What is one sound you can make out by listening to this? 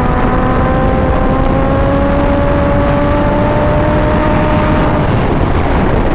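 A motorcycle engine roars loudly as it speeds up.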